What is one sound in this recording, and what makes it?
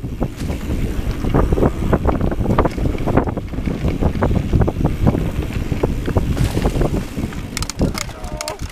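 A bicycle's parts clatter and rattle over bumps.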